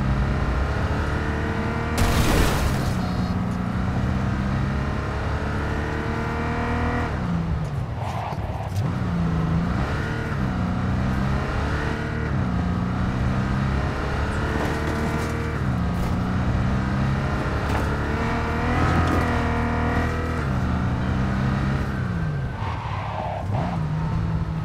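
A car engine roars steadily, its pitch climbing and dropping again and again as it shifts gears.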